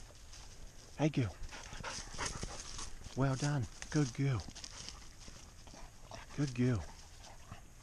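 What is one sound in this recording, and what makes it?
A dog whines in short, rising and falling cries.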